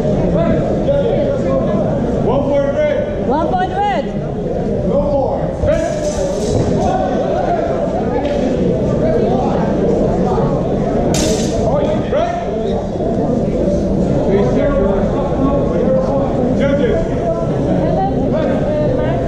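Several men chatter in a large echoing hall.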